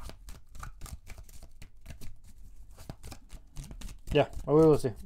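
Cards are shuffled with quick, crisp flicks.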